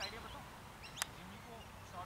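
A cricket bat knocks a ball with a sharp crack.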